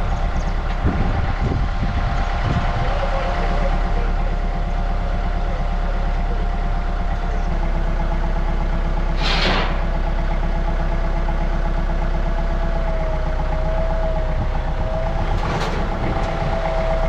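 A heavy diesel engine idles nearby with a steady low rumble.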